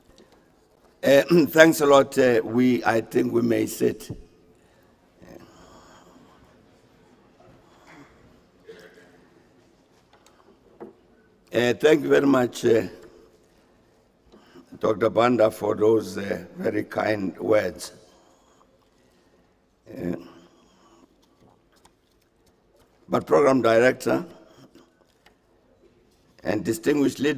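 An elderly man speaks calmly and formally into microphones, heard through a loudspeaker in a large hall.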